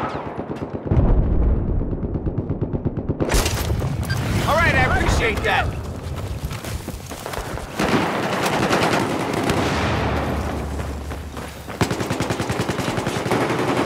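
Rapid rifle fire rattles in bursts.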